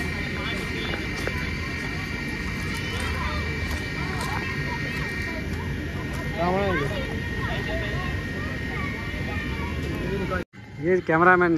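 Children and adults chatter and call out nearby outdoors.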